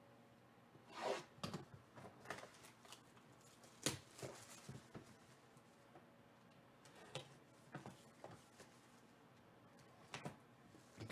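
Plastic wrapping crinkles and tears as a cardboard box is opened.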